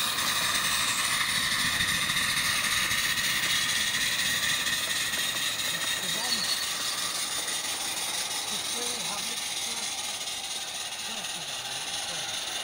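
A small steam locomotive rattles and clicks along the rails, growing fainter as it moves away.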